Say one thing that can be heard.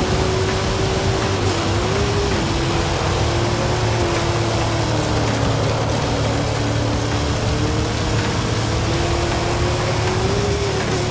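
A car engine roars steadily at high speed, its pitch dipping and rising with gear changes.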